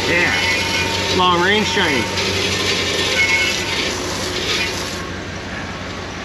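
A hose sprays water hard against the ground with a steady hiss.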